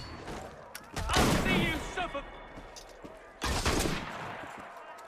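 A blade stabs into a body with a heavy, sudden thud.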